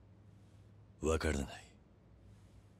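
A man answers in a low, calm voice, close by.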